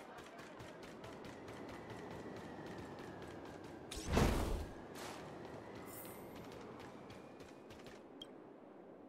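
Quick footsteps patter.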